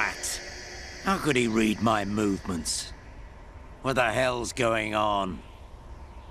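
A man speaks with alarm, close up.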